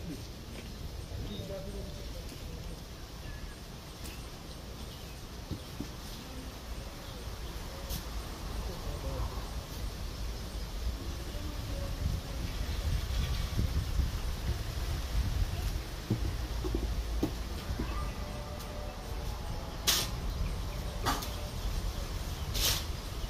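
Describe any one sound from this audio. A woman rubs something soft between her hands.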